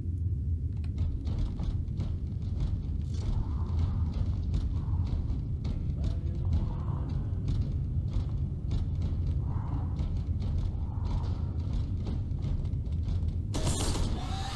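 Heavy armoured footsteps clank steadily on a metal floor.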